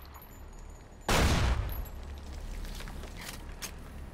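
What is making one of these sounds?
A pistol is reloaded with metallic clicks.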